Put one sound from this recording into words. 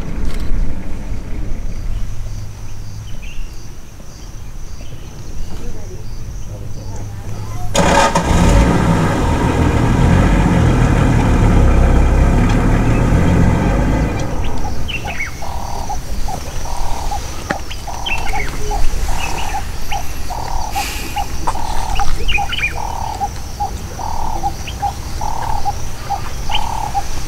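A lion tears and chews meat with wet crunching sounds.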